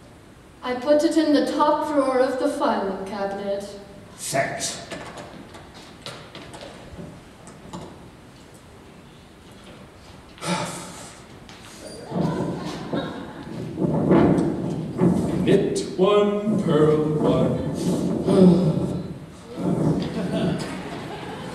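A man sings on a stage in a large echoing hall.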